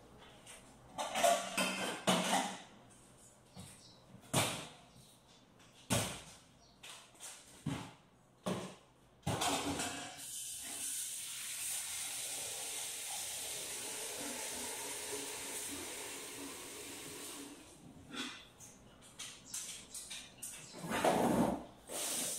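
Dishes and metal pots clatter and knock.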